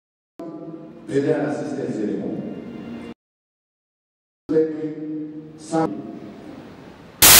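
A man speaks with feeling through a microphone and loudspeakers.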